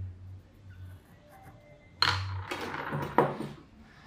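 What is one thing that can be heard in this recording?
A pencil is set down on a table with a light tap.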